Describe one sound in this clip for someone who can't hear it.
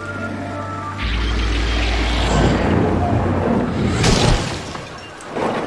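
A television hisses with loud static.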